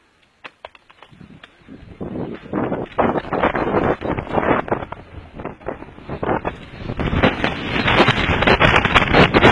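Wind rushes and buffets loudly past.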